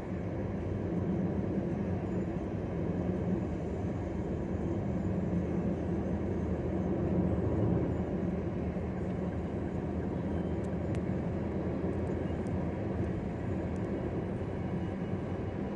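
A car's engine hums steadily as it drives along a highway.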